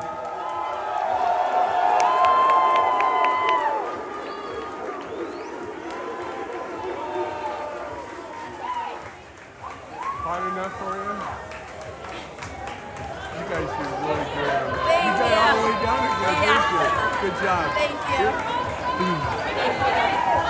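A crowd of young people cheers and shouts with excitement.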